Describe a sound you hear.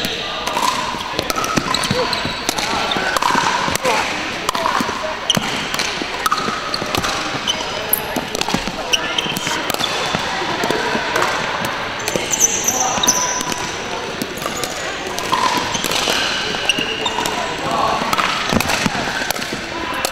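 Paddles pop sharply against a plastic ball in a quick rally.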